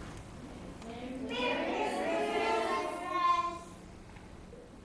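Children laugh and cheer together.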